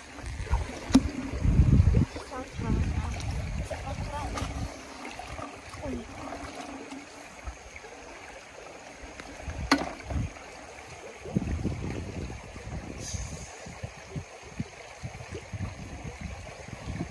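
A shallow stream trickles gently.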